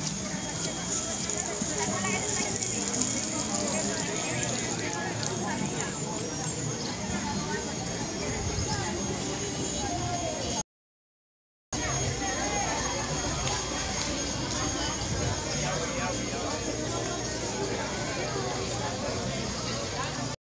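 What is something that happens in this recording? Many voices chatter at a distance outdoors.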